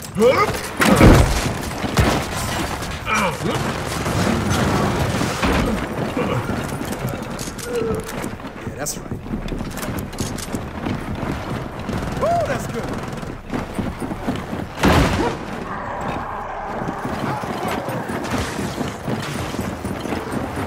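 Heavy footsteps thud as a soldier runs.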